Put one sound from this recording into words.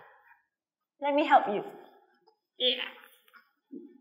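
A second young woman speaks in reply.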